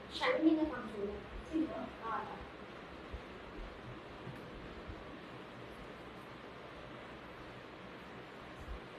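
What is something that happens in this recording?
Cloth rustles as it is handled.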